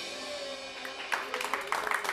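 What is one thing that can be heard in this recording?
A live band plays the final notes of a song, led by a saxophone.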